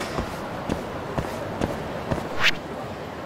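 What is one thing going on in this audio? Footsteps tap on pavement at a steady pace.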